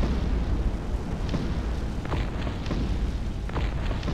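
A building blows up with a loud blast.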